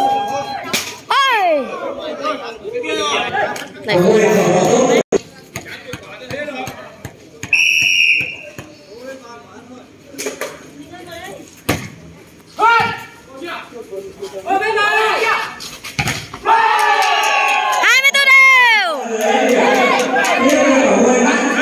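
A crowd of men cheers and shouts outdoors.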